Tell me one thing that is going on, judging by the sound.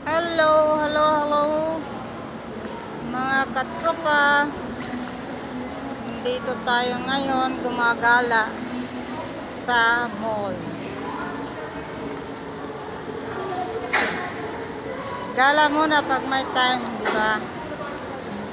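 A woman speaks close by with animation, her voice slightly muffled.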